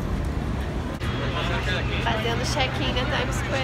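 A young woman talks with excitement close to the microphone.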